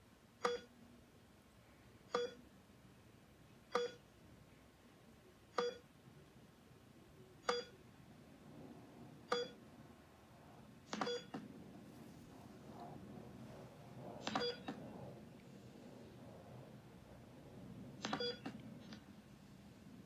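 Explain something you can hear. A heart monitor beeps at a slow, even pace.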